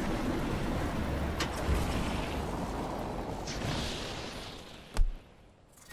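Wind rushes loudly during a fall through the air.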